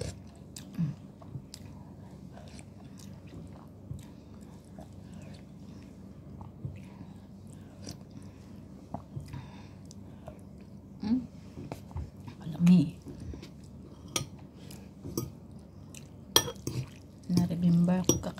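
A woman chews food close by.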